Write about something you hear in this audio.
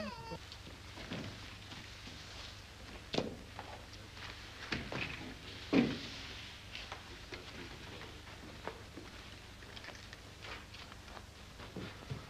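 Wooden skis clatter and knock together.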